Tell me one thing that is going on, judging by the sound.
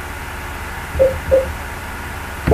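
A game menu gives short beeps as the selection moves.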